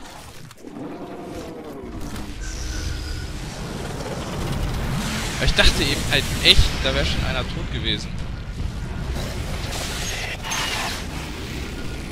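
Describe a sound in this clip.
Large wings flap with deep whooshes.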